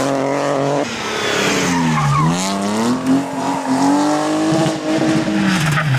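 Gravel sprays and rattles from spinning tyres.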